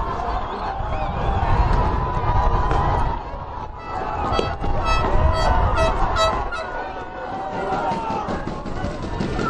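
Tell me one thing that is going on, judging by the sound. A field hockey stick hits a ball.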